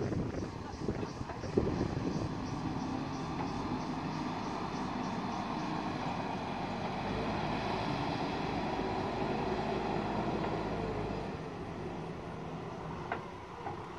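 A backhoe loader's diesel engine rumbles steadily as it drives closer.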